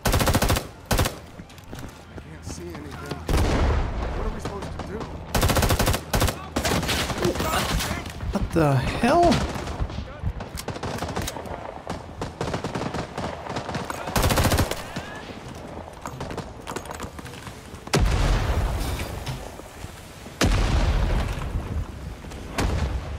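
A rifle fires loud bursts of gunshots close by.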